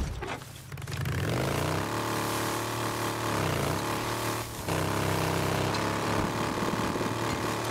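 A motorcycle engine revs and hums steadily.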